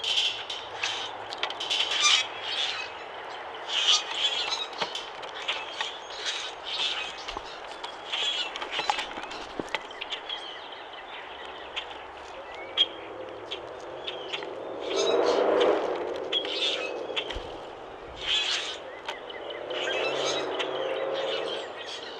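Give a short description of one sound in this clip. Birds peck and scrabble at seeds on a wooden tray.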